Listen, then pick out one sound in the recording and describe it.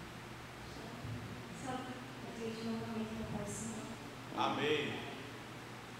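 A young woman speaks calmly into a microphone in an echoing room.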